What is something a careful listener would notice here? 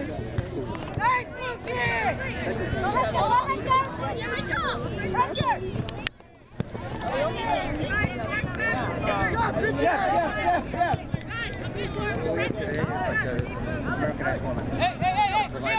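Young women players shout and call to each other across an open field.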